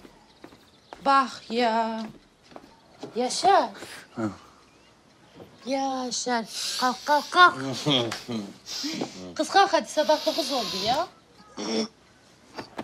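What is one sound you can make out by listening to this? A young woman speaks softly and urgently up close.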